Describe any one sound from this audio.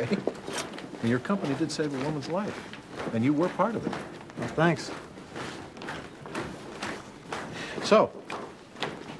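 Another man answers nearby.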